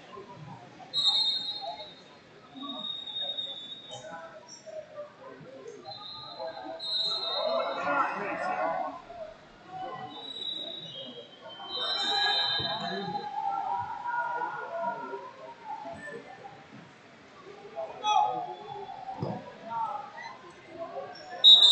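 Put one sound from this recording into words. Shoes squeak sharply on a mat.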